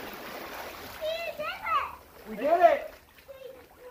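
A child shouts and squeals excitedly.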